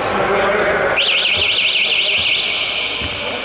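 A referee's whistle blows with a trill.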